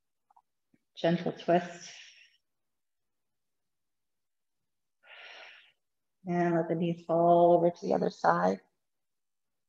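A woman speaks calmly and softly, close by.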